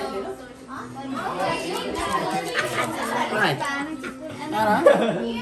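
Several young people talk and chatter close by, in overlapping voices.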